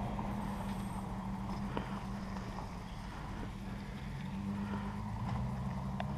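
A pickup truck drives along a nearby road.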